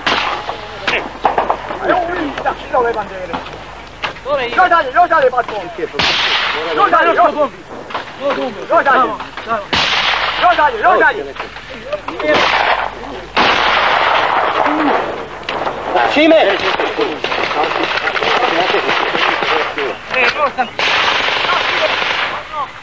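Men talk and shout urgently outdoors.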